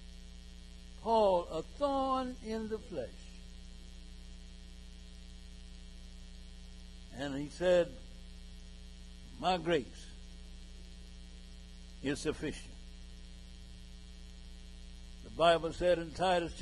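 A man preaches through a microphone in short, emphatic bursts with long pauses.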